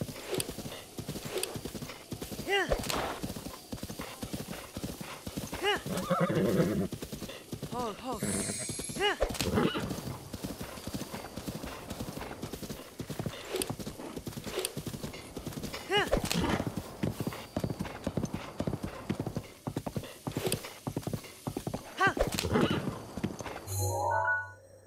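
A horse gallops on grass, its hooves drumming in a fast rhythm.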